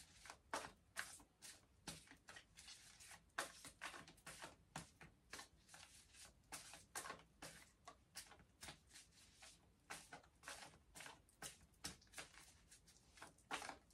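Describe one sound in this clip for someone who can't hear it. Paper cards rustle and flick in a woman's hands.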